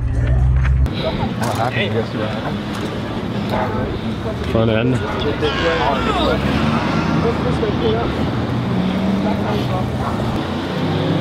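Men talk and shout excitedly close by.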